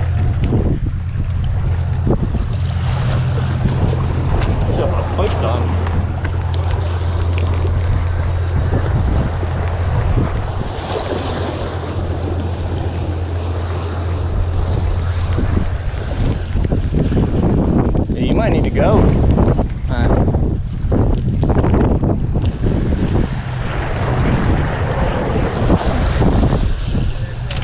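Waves wash and splash against rocks.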